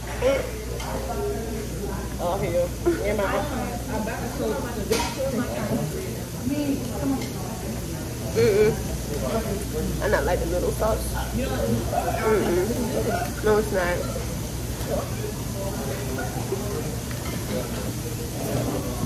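A young woman talks close by, casually and with feeling.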